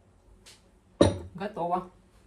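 A glass jar knocks down onto a hard surface.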